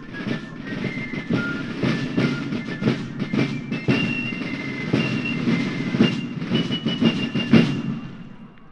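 Drums beat a steady marching rhythm.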